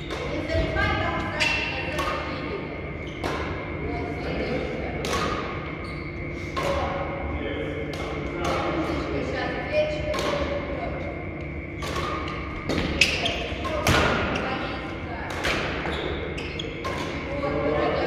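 A badminton racket strikes a shuttlecock again and again in a large echoing hall.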